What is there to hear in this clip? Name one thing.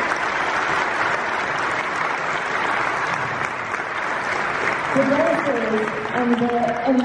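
A crowd of people claps loudly and steadily.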